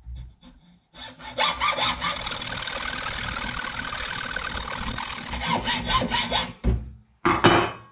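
A hacksaw cuts through metal with quick, rasping strokes.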